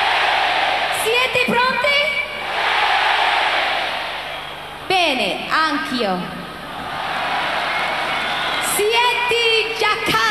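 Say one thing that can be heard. A young woman sings into a microphone over loudspeakers.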